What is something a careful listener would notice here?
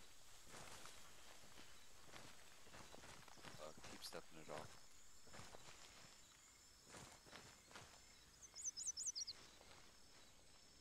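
Footsteps rustle through leaves and undergrowth.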